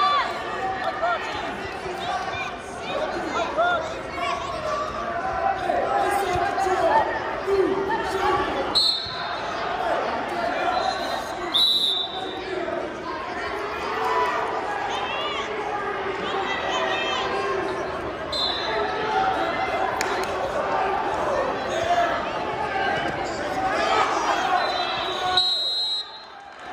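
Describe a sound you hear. A crowd of spectators chatters and cheers, echoing in a large hall.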